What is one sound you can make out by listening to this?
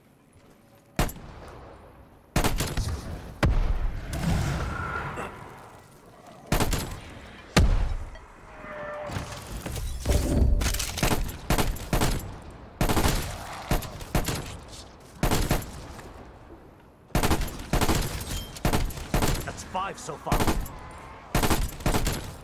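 A rifle fires in rapid bursts of loud, sharp shots.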